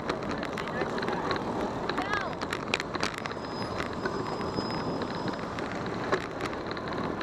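Small hard wheels rumble and clack steadily over paving.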